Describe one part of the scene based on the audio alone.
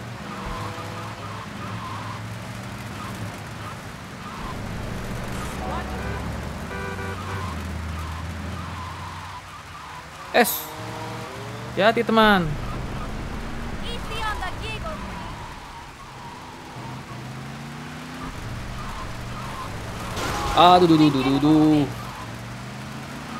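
A car engine hums steadily as a car drives.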